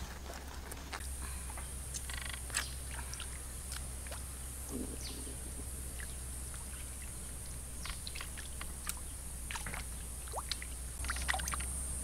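A knife scrapes and clicks against a fish.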